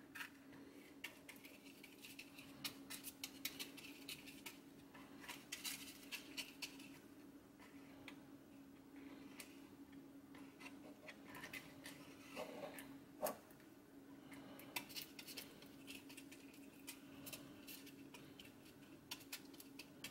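A small metal pick scrapes and clicks against a metal part.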